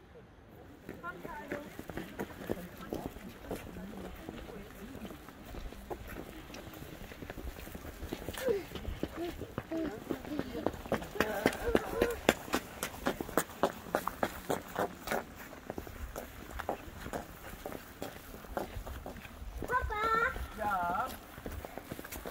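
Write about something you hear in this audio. Footsteps tap on a wet paved path.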